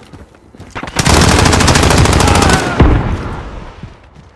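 Rapid gunshots crack loudly.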